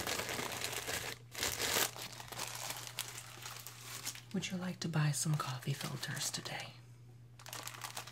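Plastic wrapping crinkles in a young man's hands.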